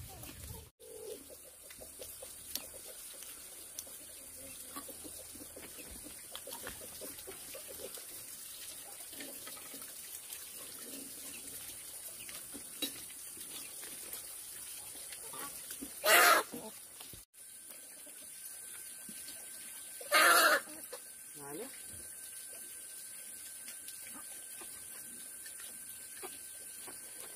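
Chopsticks clink against bowls.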